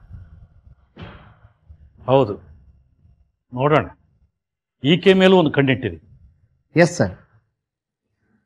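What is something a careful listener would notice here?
A middle-aged man speaks sternly and with animation.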